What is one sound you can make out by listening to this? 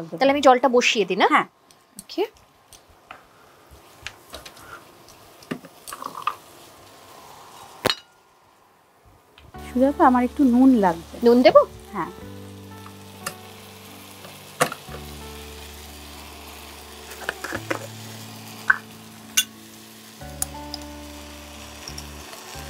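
A metal spatula scrapes and clinks in a pan.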